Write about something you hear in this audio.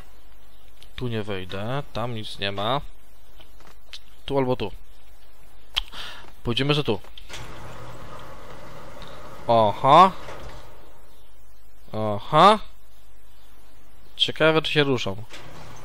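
A young man talks with animation into a headset microphone, close by.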